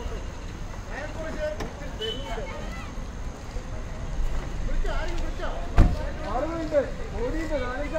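Several men talk excitedly nearby, outdoors.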